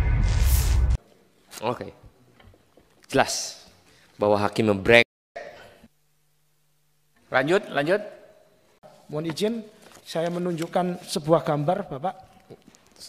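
A man speaks firmly into a microphone.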